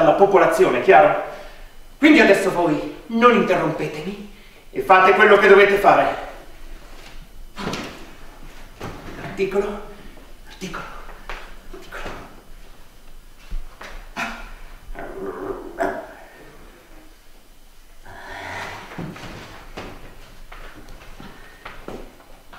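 A young man speaks with animation, heard from some distance in an echoing hall.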